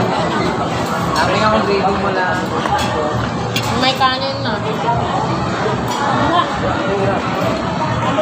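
People chatter and talk over one another nearby.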